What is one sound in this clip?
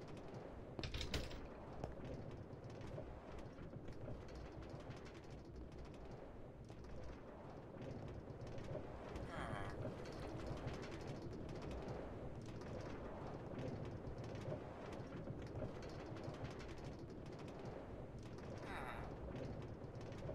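A train rumbles steadily along the rails in a tunnel.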